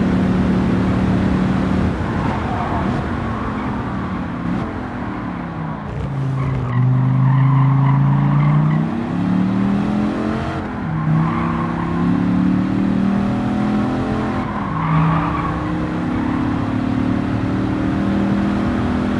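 A sports car engine roars, its pitch rising and falling as it shifts gears.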